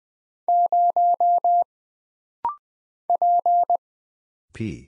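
Morse code beeps sound in short and long steady tones.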